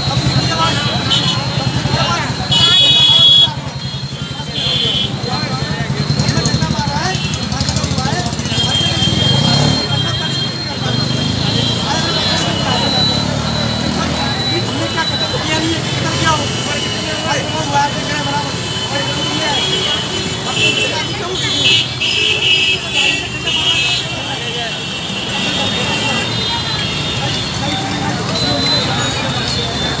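A vehicle engine idles with a low steady hum.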